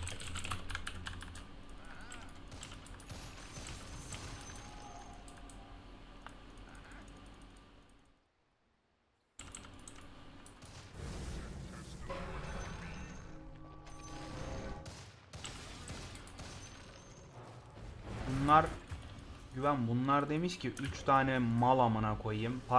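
Spell effects crackle and whoosh in a video game battle.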